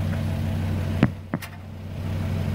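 A metal filter knocks against a metal pan.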